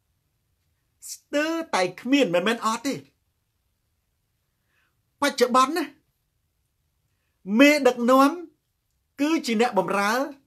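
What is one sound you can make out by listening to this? A young man speaks with animation close to a microphone, in short bursts with pauses.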